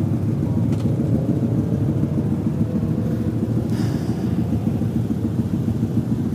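Wind buffets a helmet microphone loudly and steadily.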